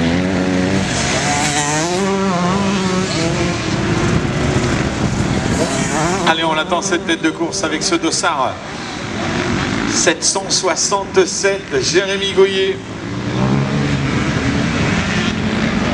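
A motocross bike engine revs hard and whines as the rider accelerates.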